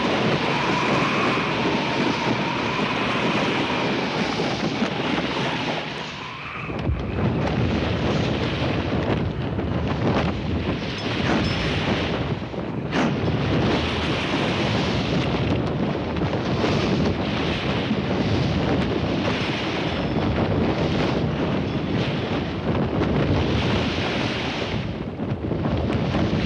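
Waves rush and splash against the hull of a moving sailboat.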